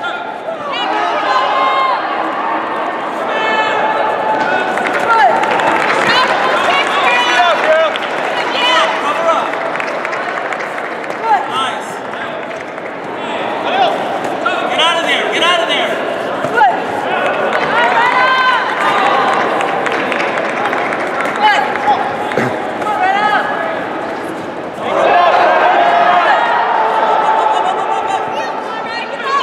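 A crowd in a large echoing hall cheers and shouts.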